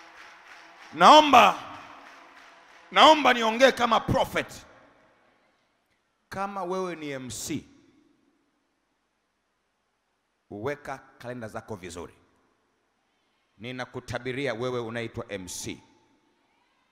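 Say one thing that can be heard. A man preaches with animation through a microphone and loudspeakers.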